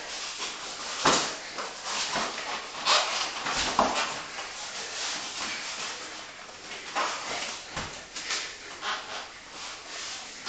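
Bodies thump and shuffle on a padded mat.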